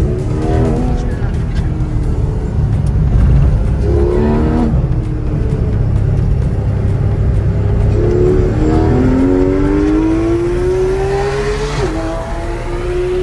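A car engine roars steadily close by.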